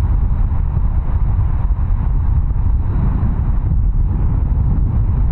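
Jet engines roar steadily close by.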